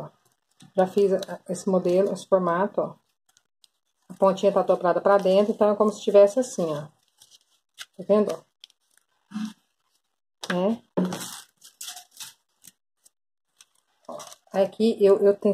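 A plastic sheet crinkles as it is handled.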